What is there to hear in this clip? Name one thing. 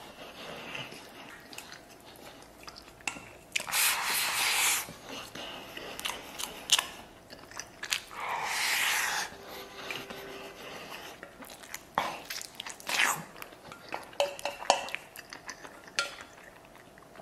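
A man chews wetly with smacking lips.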